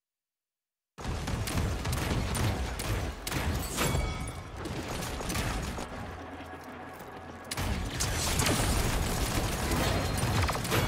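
A game's gun fires in rapid bursts.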